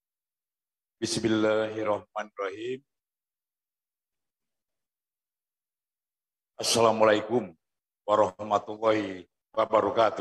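A man speaks formally into a microphone over a loudspeaker, with pauses.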